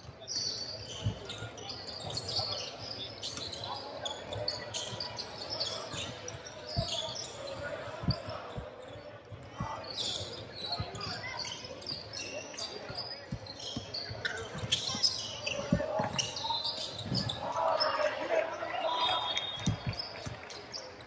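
A basketball bounces with hollow thuds on the floor.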